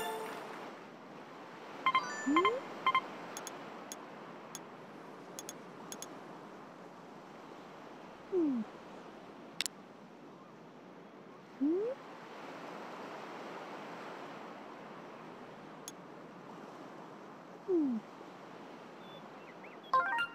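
A soft breeze blows steadily outdoors.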